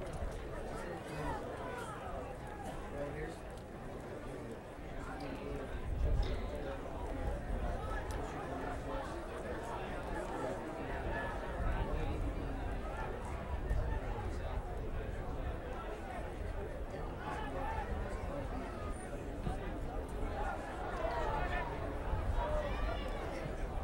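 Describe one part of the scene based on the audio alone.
A crowd murmurs and chatters in an open stadium.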